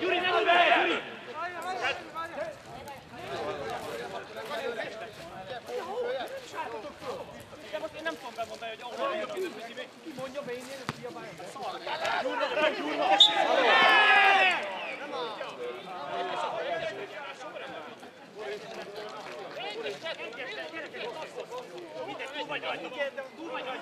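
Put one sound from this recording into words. Men shout and call out across an open football pitch.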